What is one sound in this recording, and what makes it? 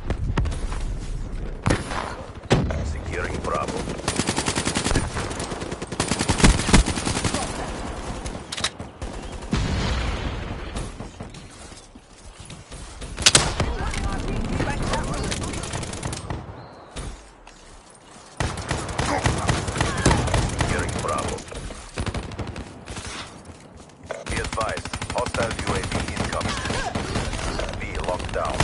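A rifle fires rapid gunshots.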